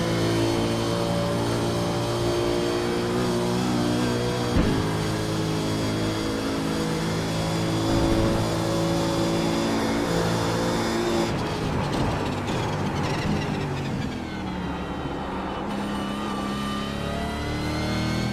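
A racing car engine roars at high revs and shifts through gears.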